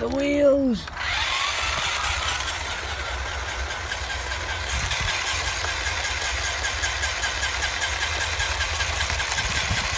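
A small electric motor whines steadily as a toy car's wheels spin fast.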